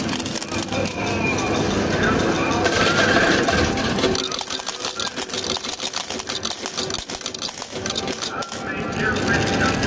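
Metal coins clink and rattle as a pusher tray slides back and forth.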